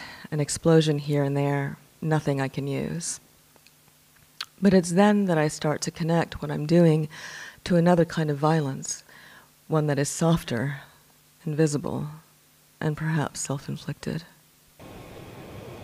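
A man speaks calmly into a microphone, reading out.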